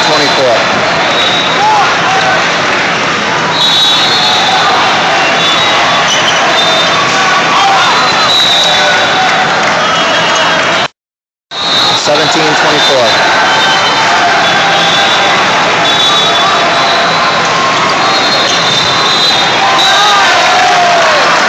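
Sneakers squeak on a sports court.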